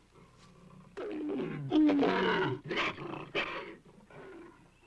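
A black panther snarls and growls.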